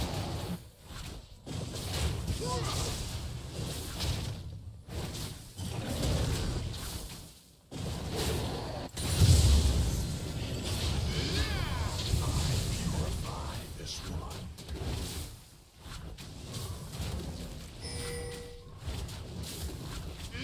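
Game combat effects clash and whoosh with spells and hits.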